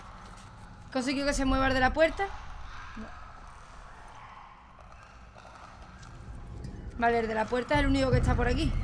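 A young woman speaks close to a microphone.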